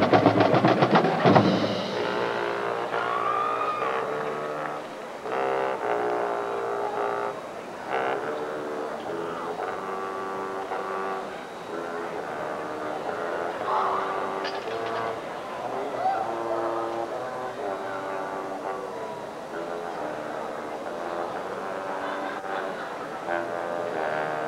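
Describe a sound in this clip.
A marching band plays loud brass chords outdoors.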